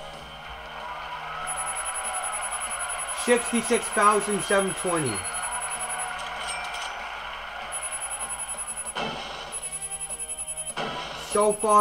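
Game music plays from a television.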